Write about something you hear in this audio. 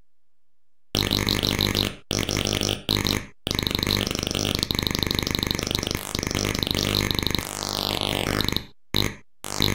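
A rapid warbling electronic tune from an old computer game plays steadily.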